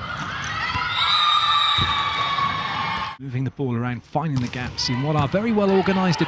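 A crowd of players shouts and cheers in a large echoing hall.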